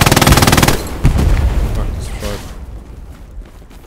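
A large explosion booms nearby and rumbles away.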